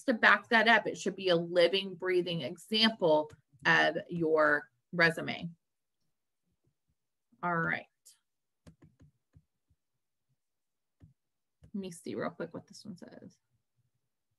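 A young woman talks calmly and clearly into a close microphone, with pauses.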